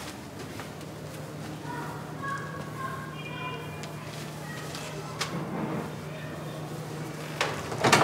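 Cloth rustles close by.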